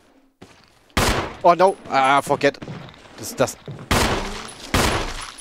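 A handgun fires several loud shots.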